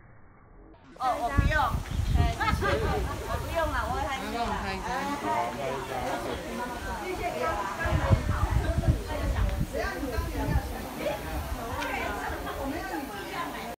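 Several women talk and chatter close by, outdoors.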